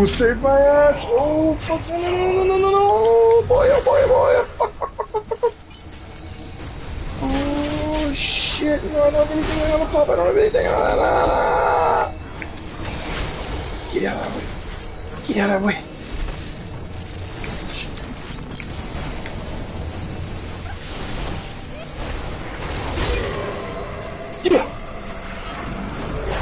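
Fighting sounds from a video game clash and crackle.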